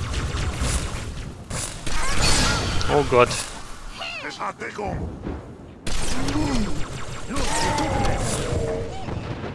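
An energy weapon fires rapid buzzing bursts.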